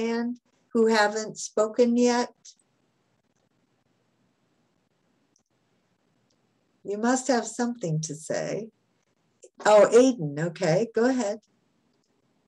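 An elderly woman speaks calmly over an online call, pausing between phrases.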